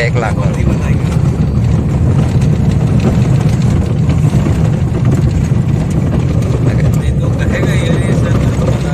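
Tyres rumble and crunch over a rough dirt road.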